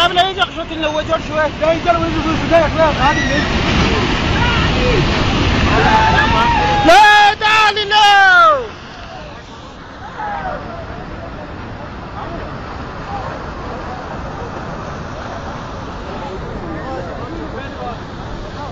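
A torrent of mud and water roars and rumbles.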